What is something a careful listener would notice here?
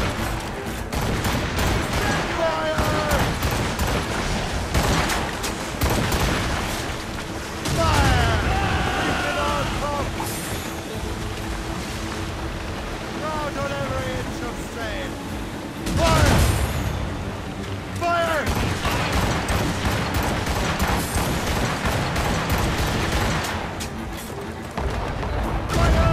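Waves crash and the sea roars steadily.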